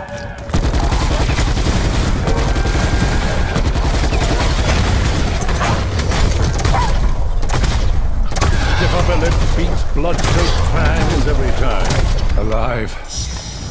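A heavy gun fires in rapid bursts with loud crackling blasts.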